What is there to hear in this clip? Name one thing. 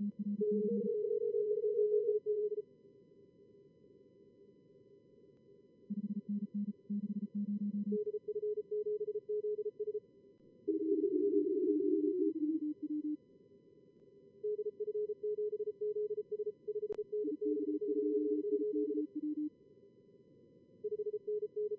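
Morse code beeps out in quick steady tones at a few different pitches.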